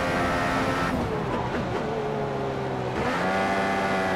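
A racing car engine drops in pitch and burbles as the car brakes and shifts down.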